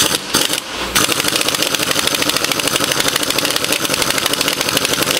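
A ratchet wrench clicks rapidly against metal.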